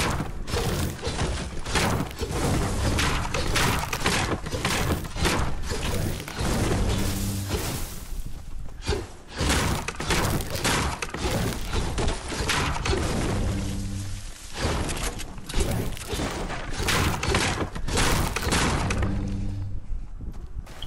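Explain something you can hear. A pickaxe strikes wood with repeated sharp thwacks.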